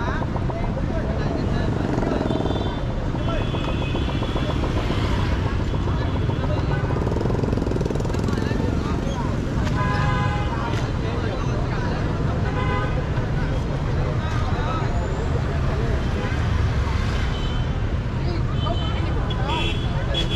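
Motorbike engines hum and rumble nearby.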